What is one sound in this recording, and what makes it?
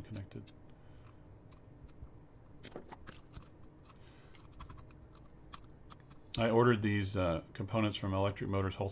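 A screwdriver clicks and scrapes against metal screws.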